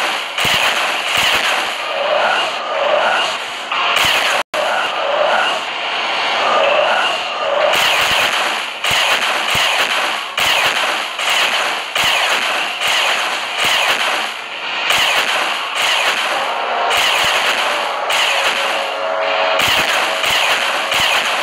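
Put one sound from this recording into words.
Electronic game blasts and zaps burst out rapidly.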